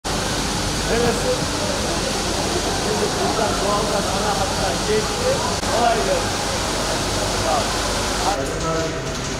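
Hazelnuts rattle along a moving conveyor belt.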